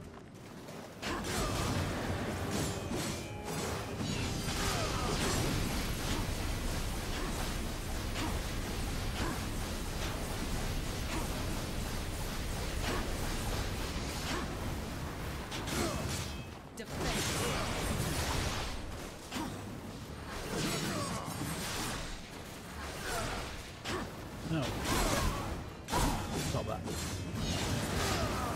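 Metal blades clang and slash in rapid fighting.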